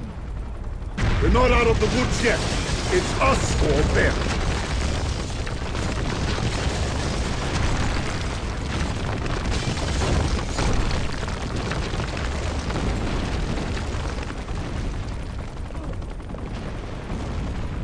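A low rumbling roar fills the air.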